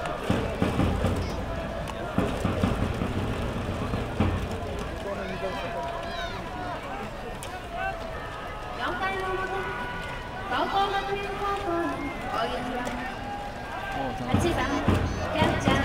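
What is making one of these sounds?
Drums beat loudly in the stands.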